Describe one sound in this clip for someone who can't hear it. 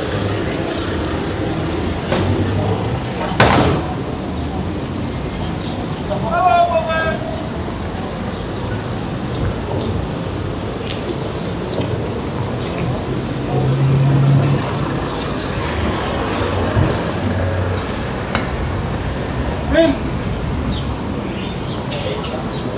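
Distant voices of passers-by murmur outdoors.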